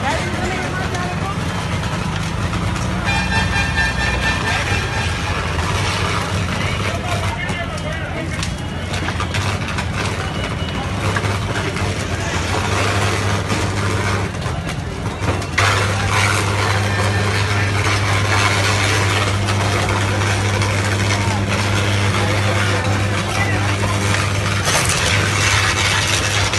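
A large fire crackles and roars.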